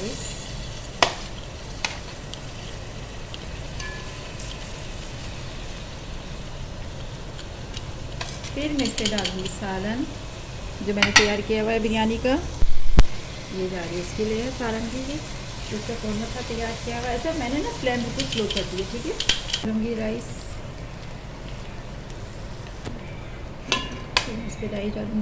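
A metal spoon clinks and scrapes against a cooking pot.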